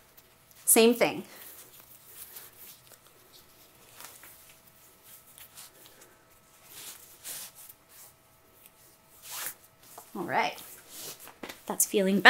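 Corset laces rustle softly as they are pulled.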